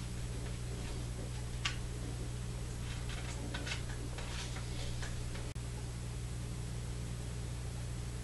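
An elderly woman breathes slowly in her sleep.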